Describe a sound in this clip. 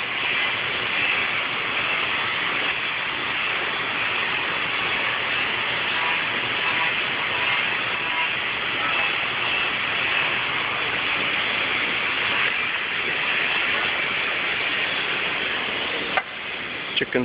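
A machine motor whirs loudly and steadily.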